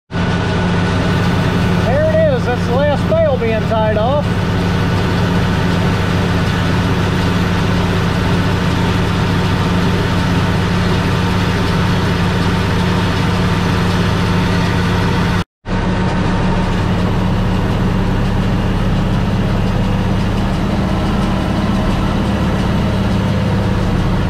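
A hay baler clatters and thumps as it gathers hay.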